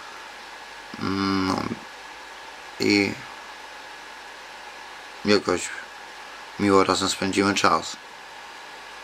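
A middle-aged man speaks in short bursts close to the microphone.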